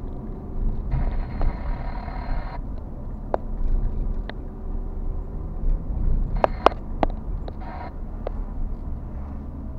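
Tyres roll over the road surface.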